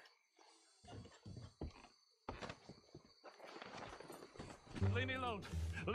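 Bodies thump and scuffle against a wooden coach.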